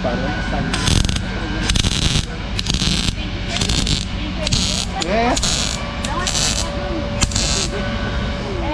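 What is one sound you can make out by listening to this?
A welding torch crackles and buzzes in short bursts.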